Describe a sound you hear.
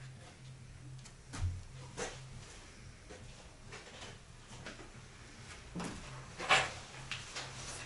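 An air filter rustles as it is pulled out.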